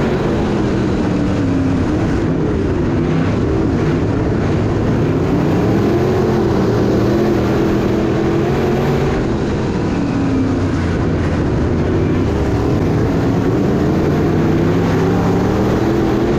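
The car's body rattles and shakes over the bumpy dirt.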